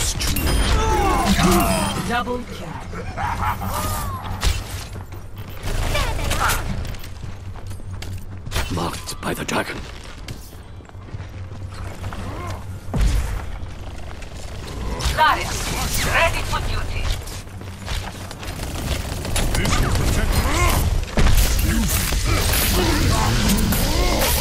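A bow twangs as arrows are loosed.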